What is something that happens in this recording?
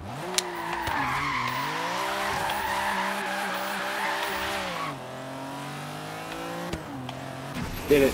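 A car engine revs and roars as it drifts.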